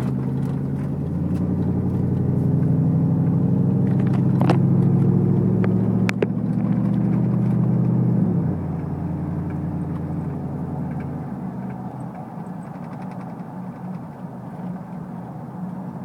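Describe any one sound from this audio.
A truck engine revs loudly, then drops back to a low idle.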